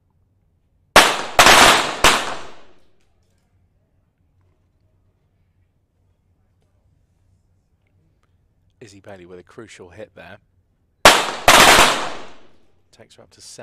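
Pistol shots crack in quick bursts and ring out in a large hall.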